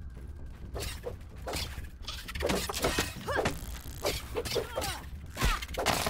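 An axe chops with dull, repeated thuds.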